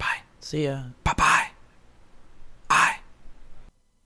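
A man speaks through a headset microphone, heard over an online call.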